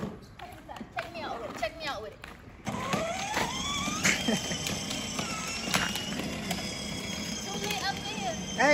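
A toy car's electric motor whines as it speeds and turns.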